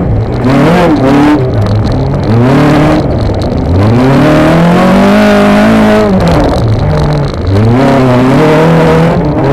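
Tyres rumble and crunch over dirt.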